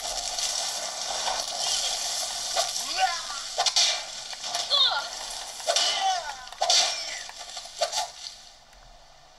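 Game sound effects and combat noises play from a handheld console's speakers.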